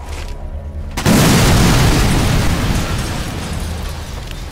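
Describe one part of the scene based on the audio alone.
A loud explosion booms and rumbles away slowly.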